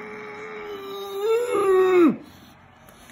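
A young man sings a long drawn-out note close by, then lets it drop.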